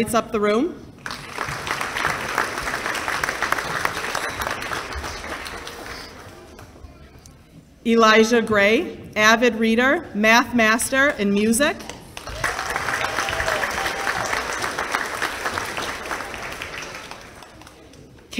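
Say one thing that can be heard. An audience applauds and claps steadily.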